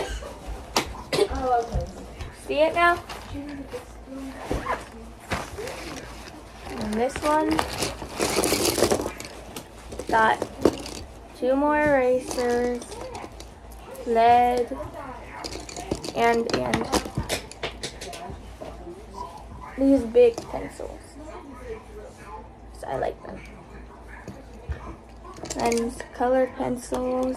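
A young girl talks calmly and close by.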